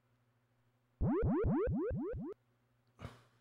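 A quick run of rising electronic zaps plays.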